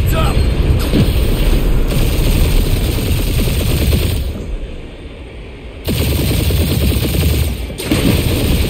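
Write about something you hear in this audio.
A spaceship engine roars and whooshes.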